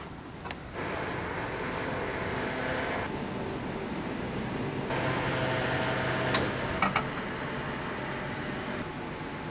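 Fuel gushes through a pump nozzle into a tank.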